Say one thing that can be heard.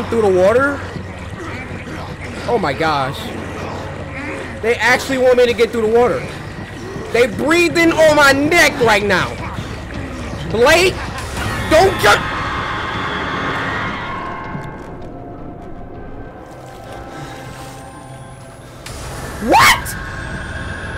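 A young man talks and exclaims with animation into a close microphone.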